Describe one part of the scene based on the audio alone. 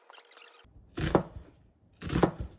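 A knife chops an onion on a cutting board with crisp thuds.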